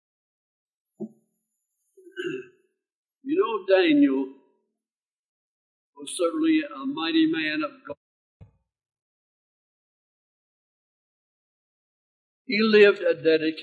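An elderly man speaks slowly and calmly into a microphone, with long pauses.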